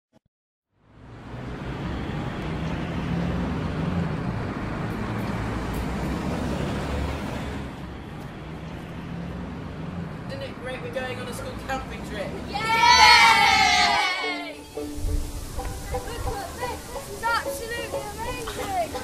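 Children chatter together close by.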